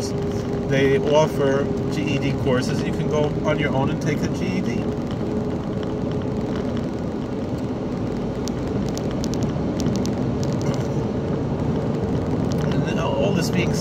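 A car engine and road noise rumble steadily.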